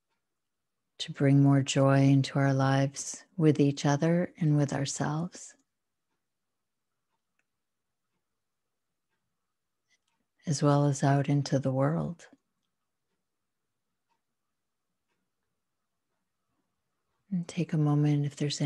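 A middle-aged woman talks calmly over an online call.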